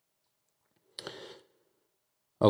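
A card slides softly across a table.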